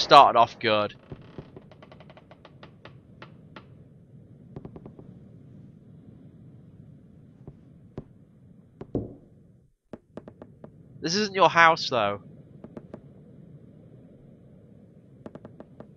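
Soft electronic blips tick rapidly as text types out.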